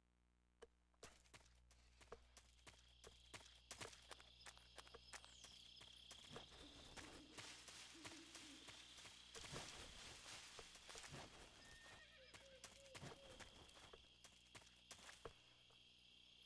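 Grass rustles and swishes as something crawls through it.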